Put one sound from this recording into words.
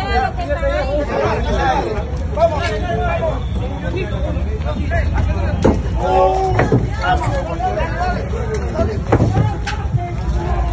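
A crowd of men shout and call out to each other nearby, outdoors.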